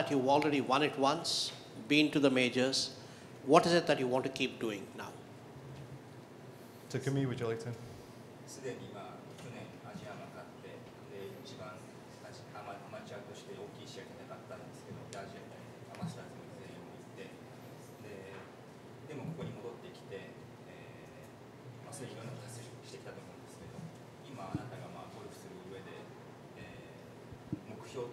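A young man speaks calmly into a microphone.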